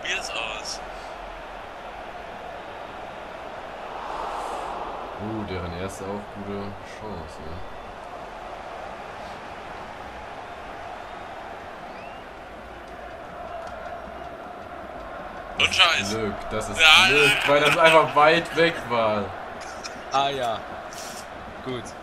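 A stadium crowd murmurs and cheers steadily in the background.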